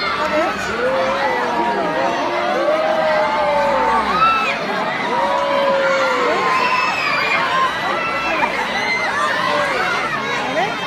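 A large crowd shouts and cheers loudly outdoors.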